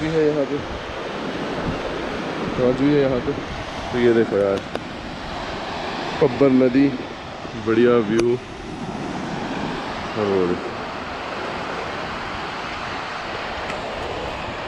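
A river rushes and splashes over stones.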